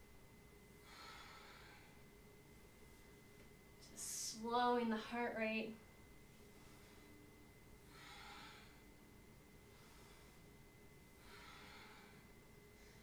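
A young woman breathes in and out deeply.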